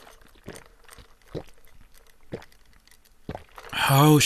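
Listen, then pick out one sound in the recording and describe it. A man sips a drink through a straw.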